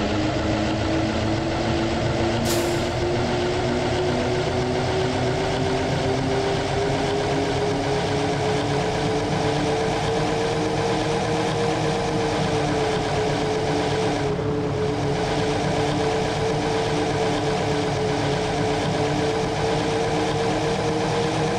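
A bus engine hums steadily, its pitch slowly rising as it speeds up.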